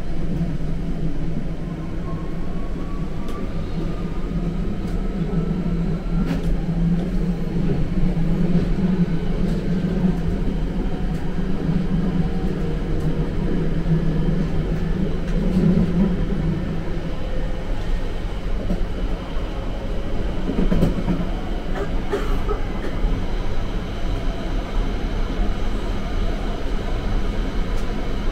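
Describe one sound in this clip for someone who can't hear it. A subway train rumbles and rattles loudly along the tracks.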